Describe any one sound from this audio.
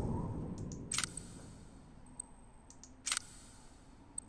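Short clicks sound as menu options are chosen.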